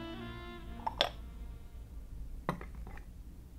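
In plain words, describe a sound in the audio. A teapot and cups clink down onto a table.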